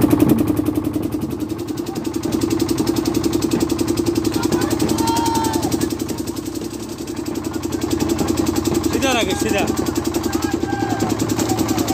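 A boat engine chugs steadily up close.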